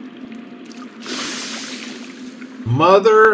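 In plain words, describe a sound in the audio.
Water splashes loudly as a body plunges in.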